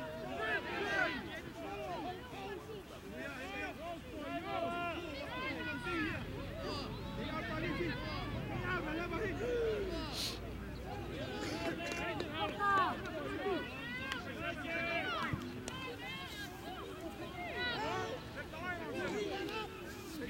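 Young men shout and call to each other in the distance, outdoors.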